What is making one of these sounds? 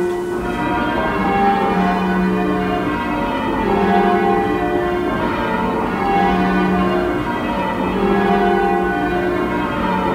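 A large wheel spins with a droning hum that swells and fades in slow, even waves.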